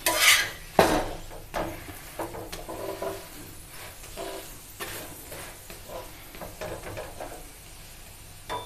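A flatbread sizzles softly on a hot griddle.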